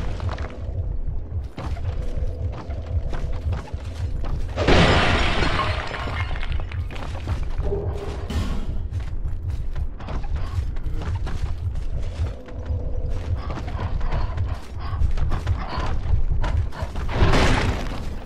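Heavy footsteps thud on wooden boards.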